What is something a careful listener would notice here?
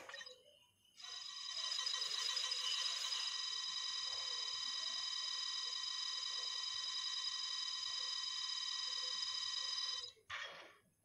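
A game chime rings steadily while a counter climbs.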